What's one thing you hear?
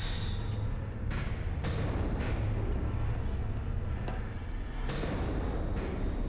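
Footsteps clank on a metal grating floor.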